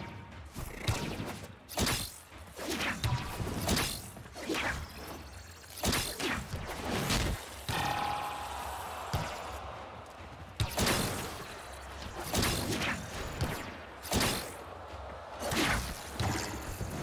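Energy weapons fire in sharp, rapid blasts.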